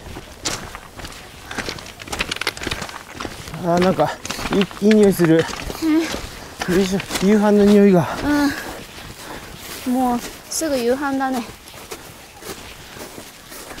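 Boots crunch on loose stones with each step.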